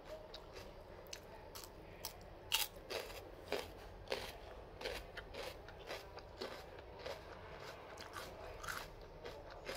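A woman chews fruit close by.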